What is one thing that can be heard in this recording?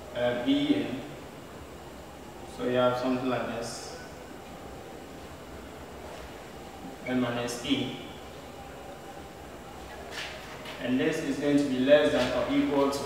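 A man speaks calmly, explaining, nearby.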